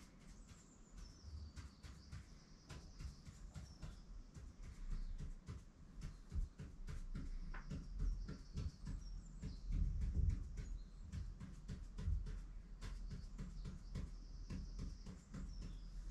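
A pen scratches on paper.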